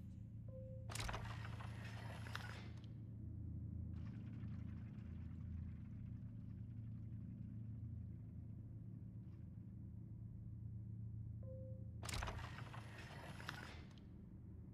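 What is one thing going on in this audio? A heavy globe grinds as it turns.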